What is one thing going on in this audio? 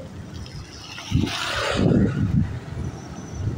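A motorbike drives past on a wet road with a hiss of tyres.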